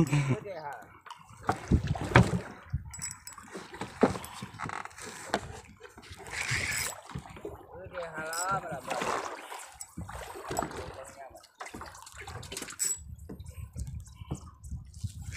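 Waves slap against a boat's hull.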